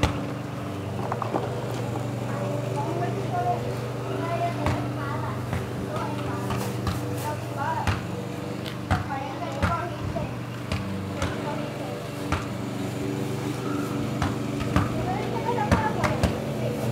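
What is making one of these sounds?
Young boys talk with animation nearby.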